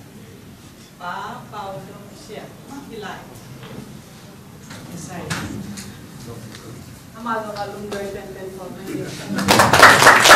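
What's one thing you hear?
A middle-aged woman reads out calmly.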